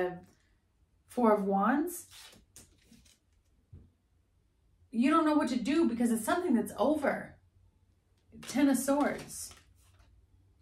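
A young woman speaks calmly and with animation close to a microphone.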